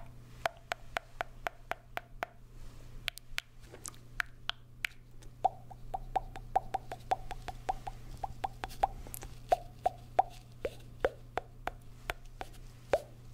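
A man makes wet mouth clicks and pops into a plastic cone close to a microphone.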